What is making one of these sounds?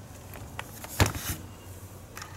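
Plastic meters knock softly as they are set down on a surface.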